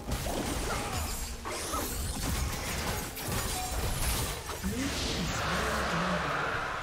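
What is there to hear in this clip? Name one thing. Game spell effects crackle and burst during a fight.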